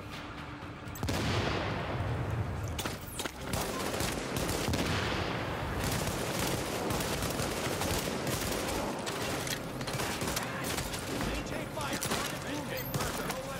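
Rifles fire in rapid bursts of gunshots.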